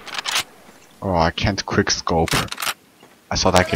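A rifle's action clicks and clacks.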